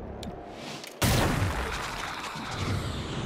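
A gunshot bangs loudly and rings out.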